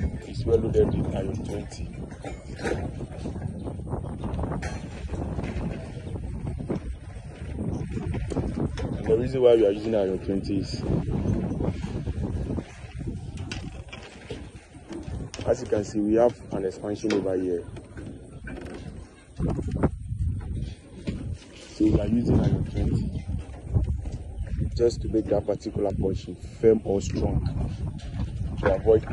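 Steel wire clicks and scrapes against metal bars as a worker twists ties.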